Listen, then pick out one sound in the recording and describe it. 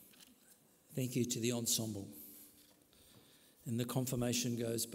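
A man speaks into a microphone.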